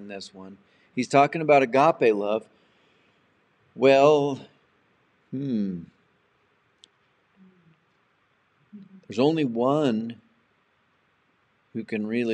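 An elderly man speaks calmly and expressively close to a microphone, with pauses.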